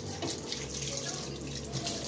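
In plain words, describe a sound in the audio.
Tap water runs into a metal pan.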